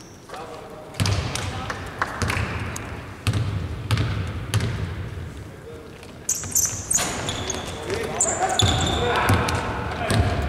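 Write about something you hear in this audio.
A basketball bounces on a hardwood court in a large echoing arena.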